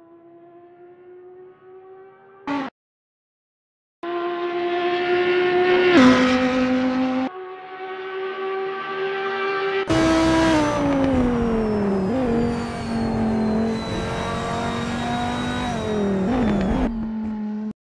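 A racing car engine drones at a steady pitch, then drops and rises as the gears change.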